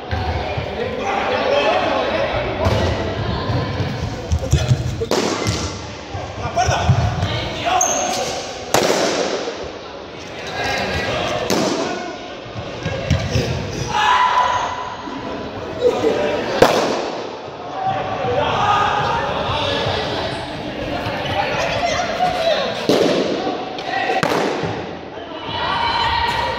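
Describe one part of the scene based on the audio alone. Several people talk and call out throughout, in a large echoing hall.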